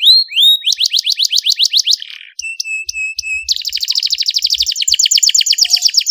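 A small bird sings loudly and close by in rapid trills and whistles.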